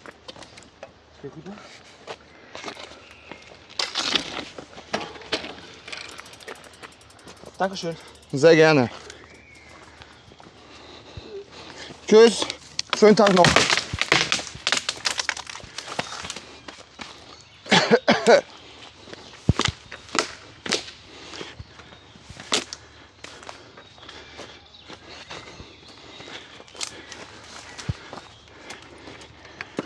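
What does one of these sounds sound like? Branches crack and snap.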